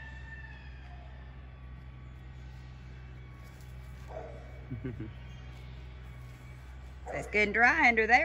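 A hen pecks at dry dirt.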